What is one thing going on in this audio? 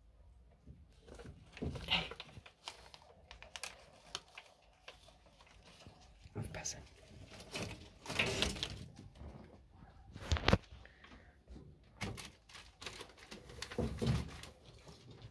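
Newspaper rustles and crinkles as a hand moves through it.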